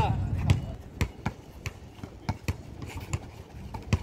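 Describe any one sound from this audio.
A basketball bounces repeatedly on an outdoor court.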